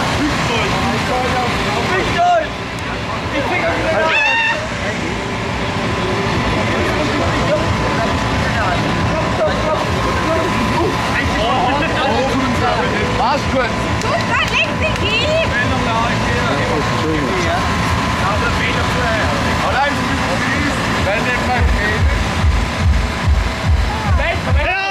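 A crowd of young men and women talk and cheer loudly outdoors.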